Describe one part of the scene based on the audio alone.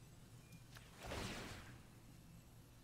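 A magical whoosh sweeps past and fades.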